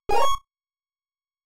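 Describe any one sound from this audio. A retro video game plays a short electronic chime.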